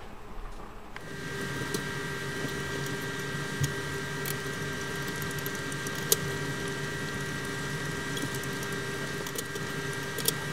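Water boils and bubbles steadily in a pot.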